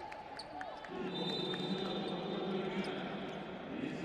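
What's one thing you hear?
Sports shoes squeak on a hard court.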